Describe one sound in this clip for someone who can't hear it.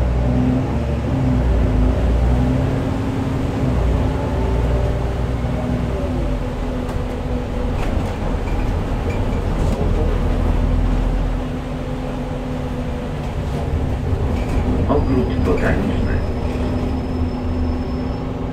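Tyres roll over a wet road.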